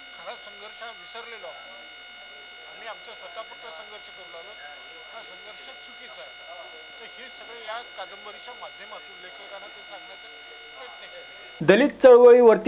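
An elderly man speaks earnestly into a microphone, faint and thin.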